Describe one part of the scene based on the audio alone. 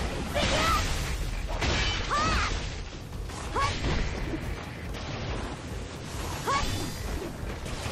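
Bursts of magic energy whoosh and crackle.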